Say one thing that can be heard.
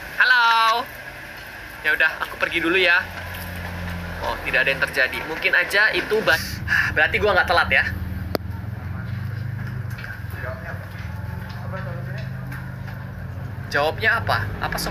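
A young man talks animatedly and shouts close to a microphone.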